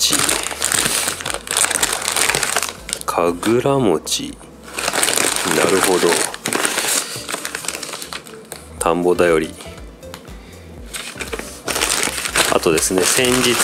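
Plastic wrappers crinkle and rustle as they are handled.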